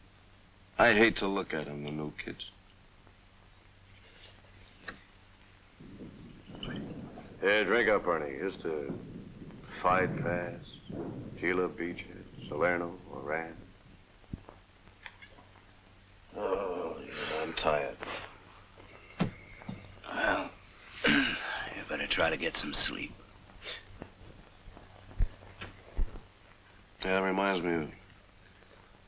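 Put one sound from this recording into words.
A man speaks quietly and wearily, close by.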